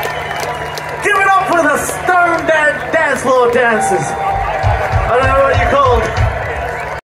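A singer sings loudly through a microphone.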